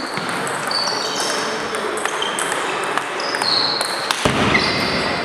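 A table tennis ball clicks back and forth off paddles and a table in an echoing hall.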